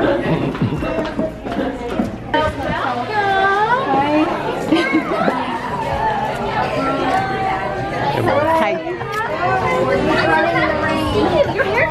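Several women talk and exclaim nearby in a lively room.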